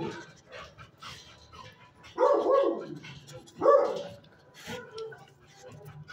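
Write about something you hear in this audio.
A dog sniffs at the floor close by.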